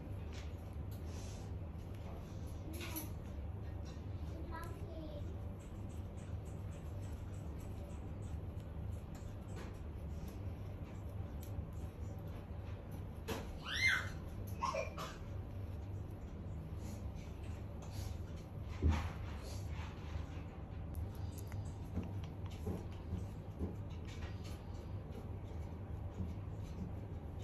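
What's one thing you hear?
Fingers rustle through a parrot's feathers.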